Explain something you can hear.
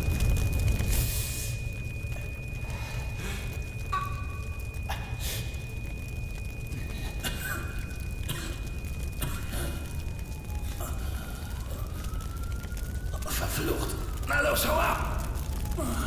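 Punches and blows thud in a scuffle.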